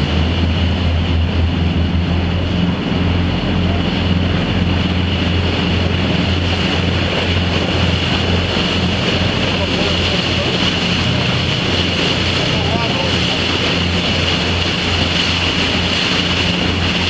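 A boat engine drones loudly and steadily close by.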